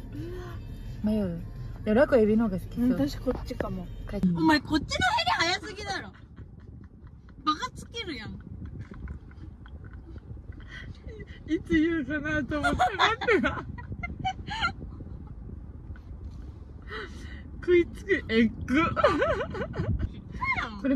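A young woman laughs and talks close by, sounding amused.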